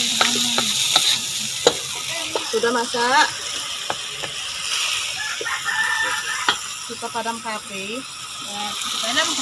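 A wooden spatula scrapes and knocks against a metal pan.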